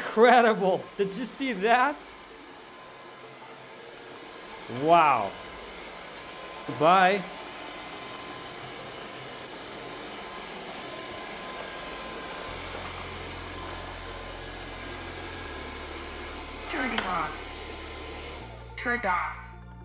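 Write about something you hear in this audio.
A cordless vacuum cleaner whirs steadily across a hard floor.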